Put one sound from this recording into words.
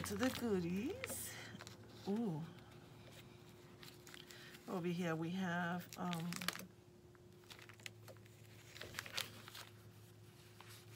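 Paper cards rustle and tap as they are handled.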